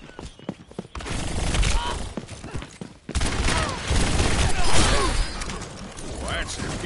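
A revolver fires sharp gunshots in quick bursts.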